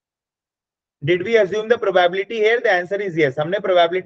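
A young man speaks calmly through a microphone on an online call.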